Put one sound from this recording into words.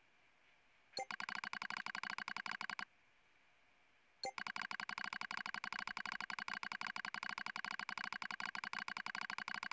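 Rapid electronic blips tick as text types out.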